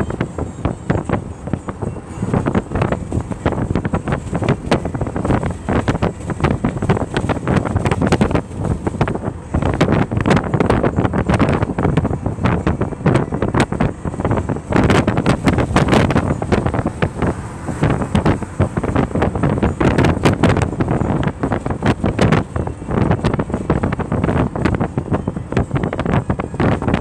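A car engine hums steadily while driving on a road.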